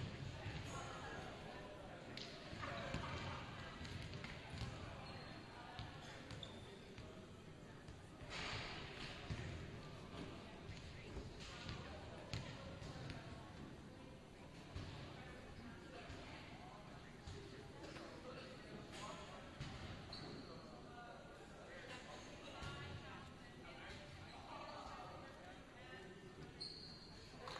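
Players and spectators chatter in a large echoing gym.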